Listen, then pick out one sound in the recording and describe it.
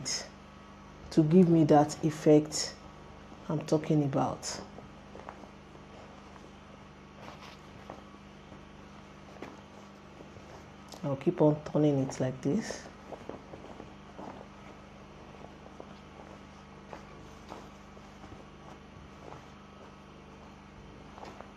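Fabric rustles softly as it is folded.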